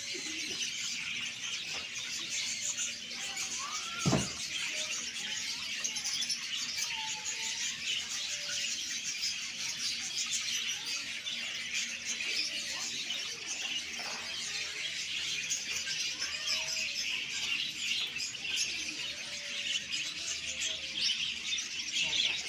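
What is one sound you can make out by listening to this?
Many caged birds chirp and twitter busily throughout.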